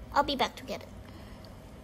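A toy plays a short, high, squeaky voice clip.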